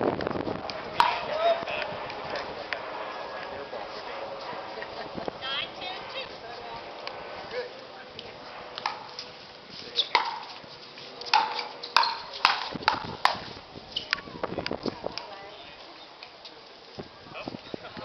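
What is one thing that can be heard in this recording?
Paddles strike plastic balls with sharp hollow pops outdoors.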